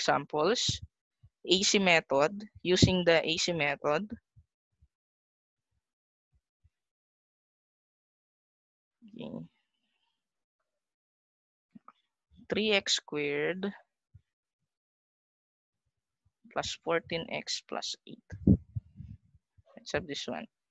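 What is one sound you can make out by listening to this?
A woman speaks calmly through a computer microphone, in short bursts with pauses.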